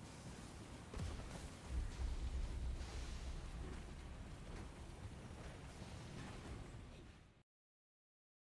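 A low rumble swells and fades.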